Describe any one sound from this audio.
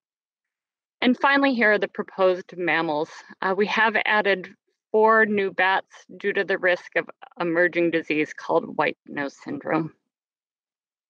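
A woman speaks calmly into a microphone over an online call.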